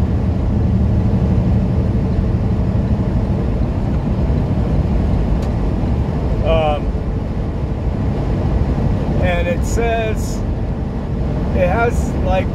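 A truck engine rumbles steadily while driving on a highway.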